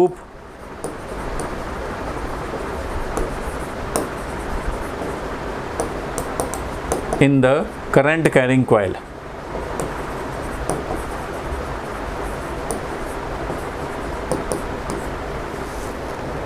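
A marker squeaks and taps faintly on a board.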